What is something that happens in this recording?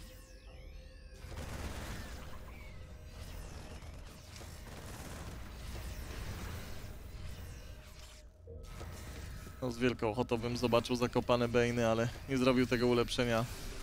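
Laser weapons zap and fire in quick bursts.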